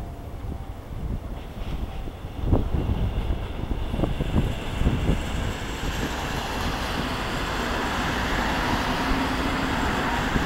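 A train rumbles closer on the tracks, its wheels and motors growing louder.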